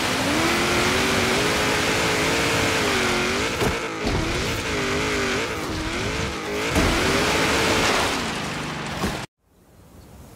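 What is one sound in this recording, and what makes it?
A rally car engine roars and revs up and down.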